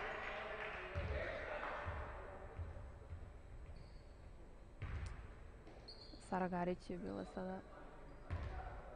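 A basketball thumps on a wooden court.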